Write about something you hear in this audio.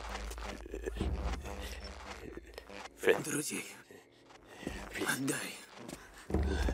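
An elderly man speaks slowly and menacingly.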